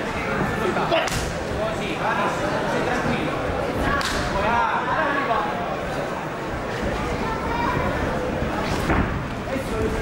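Punches and kicks thud against bodies.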